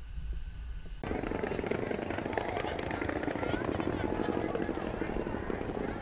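A crowd chatters in a busy open square.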